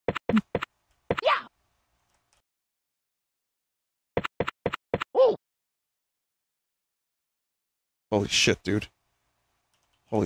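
Short electronic game sound effects bloop and chirp in quick bursts.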